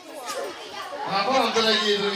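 An elderly man speaks loudly and warmly to children.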